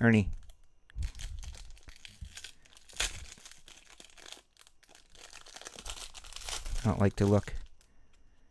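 Foil wrapping crinkles and tears as hands open a pack.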